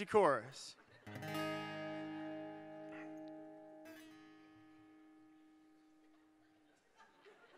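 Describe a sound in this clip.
A man strums an acoustic guitar chord that rings out and fades.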